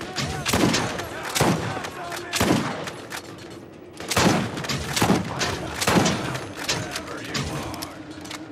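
Gunshots fire in bursts, with sharp loud cracks.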